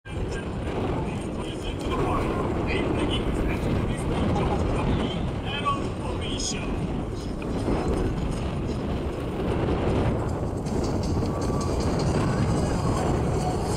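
Wind blusters across the microphone outdoors.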